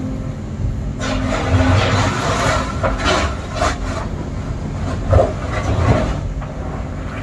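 Gravel and stones rattle and crunch as an excavator bucket scoops and dumps them.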